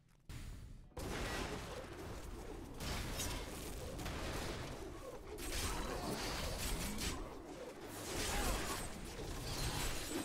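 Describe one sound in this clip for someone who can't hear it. Fighting sounds from a video game clash, crackle and boom.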